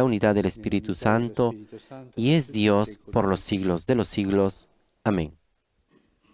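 An elderly man speaks calmly into a microphone in an echoing room.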